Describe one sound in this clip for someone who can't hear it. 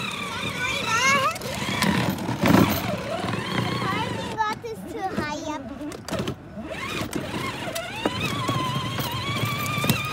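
A toy car's electric motor whirs as the car rolls over pavement.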